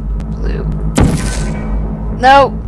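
A game gun fires with a sharp electronic zap.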